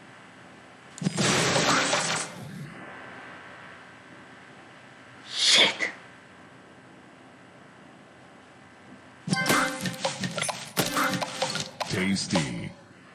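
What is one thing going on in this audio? Bright chiming game sound effects play in bursts.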